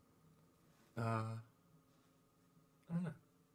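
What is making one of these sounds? A young man laughs over a microphone.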